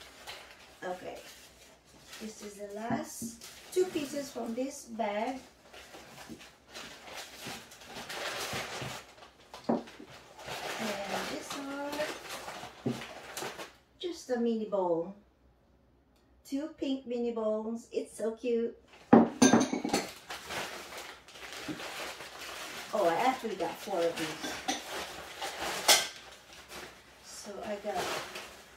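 Paper and plastic packaging rustles and crinkles.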